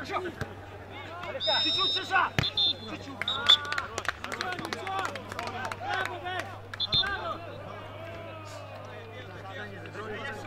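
Players shout to each other outdoors on an open field.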